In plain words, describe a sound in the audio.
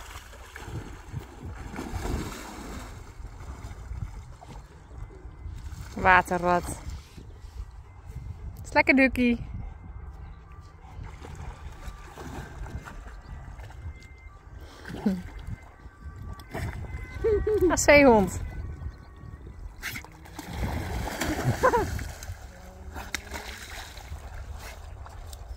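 A dog splashes and paddles through water close by.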